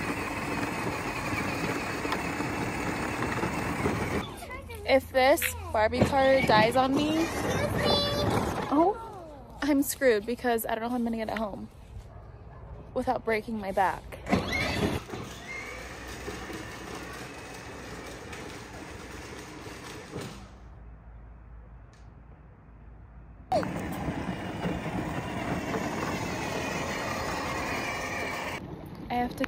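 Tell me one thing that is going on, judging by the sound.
A toy ride-on car's electric motor whirs as it drives over pavement.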